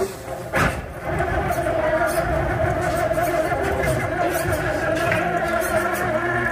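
A small toy car's electric motor whirs steadily.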